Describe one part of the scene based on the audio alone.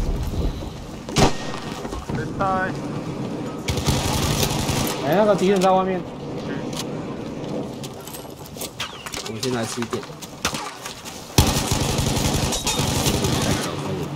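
Rapid gunfire rattles at close range.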